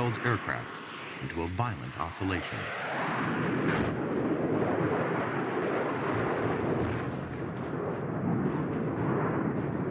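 A jet engine roars loudly.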